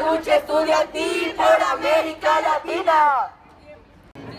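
A group of young women chant loudly together.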